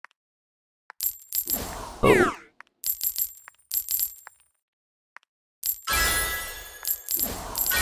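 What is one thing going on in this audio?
Bright chimes and a cash jingle ring out as money is collected.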